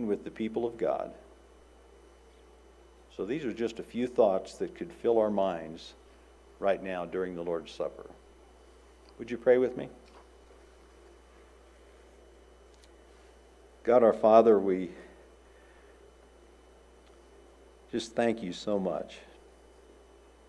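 An elderly man speaks calmly into a microphone, with long pauses.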